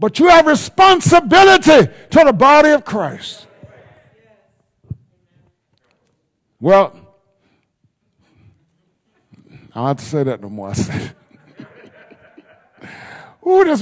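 A man preaches loudly and with fervour through a microphone in an echoing hall, pausing between phrases.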